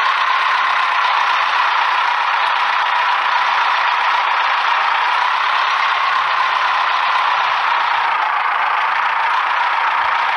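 Water splashes under truck tyres.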